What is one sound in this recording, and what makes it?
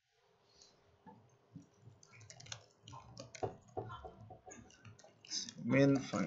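Keys click on a laptop keyboard.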